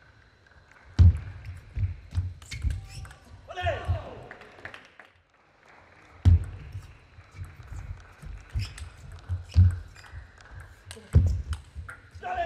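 A table tennis ball clicks back and forth off bats and the table in quick rallies.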